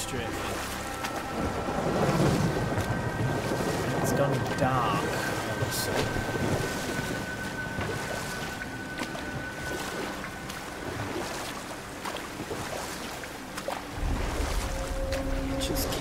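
Water splashes around a rowing boat.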